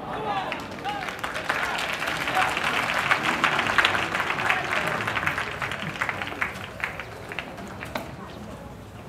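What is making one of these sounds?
A crowd claps and cheers loudly, then settles.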